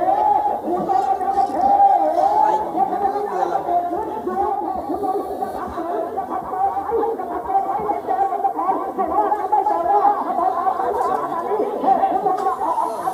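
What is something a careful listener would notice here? A crowd of men shout and chant together outdoors.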